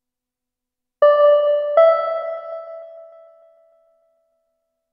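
Two electronic bell-like tones sound one after the other and ring out.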